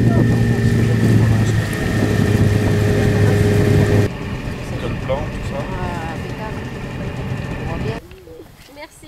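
Water laps gently across a lake.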